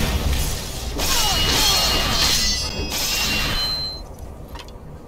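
A sword slashes and strikes with a sharp swoosh.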